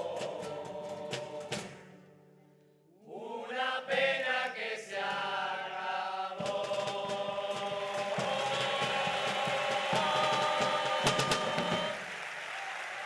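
A group of men sing together loudly in a large hall.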